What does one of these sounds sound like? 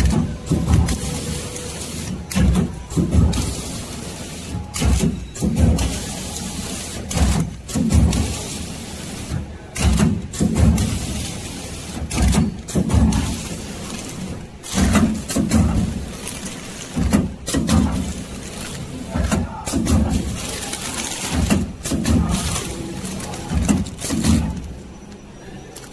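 A packaging machine whirs and thumps in a steady repeating rhythm.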